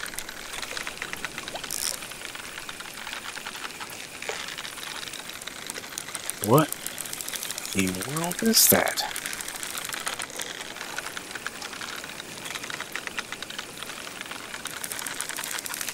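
A fishing reel clicks rapidly as the line is wound in.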